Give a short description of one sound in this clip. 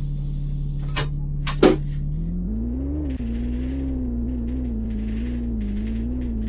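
A bus engine hums steadily and rises in pitch as the bus pulls away.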